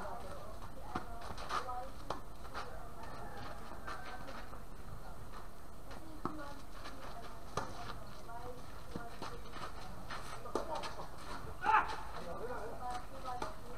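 Tennis balls pop off rackets in a steady rally outdoors.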